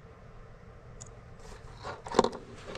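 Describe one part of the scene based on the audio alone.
Metal probe tips click and scrape against a plastic plug.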